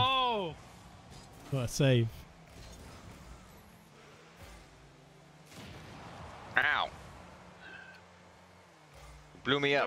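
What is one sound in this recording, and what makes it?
A car's boost roars with a rushing whoosh.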